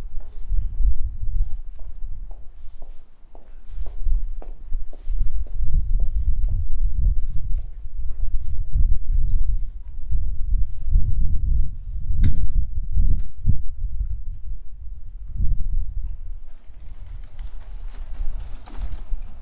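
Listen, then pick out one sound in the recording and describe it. Footsteps tap steadily on brick paving.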